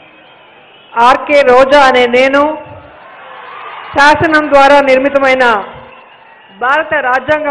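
A woman reads out loudly through a microphone and loudspeaker.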